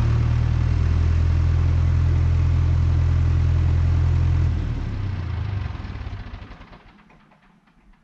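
An engine hums steadily nearby, then fades away.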